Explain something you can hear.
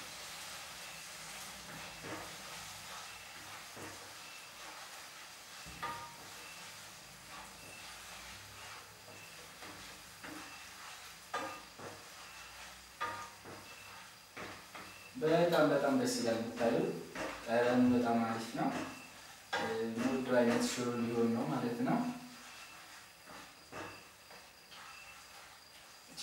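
A wooden spatula scrapes and taps in a frying pan.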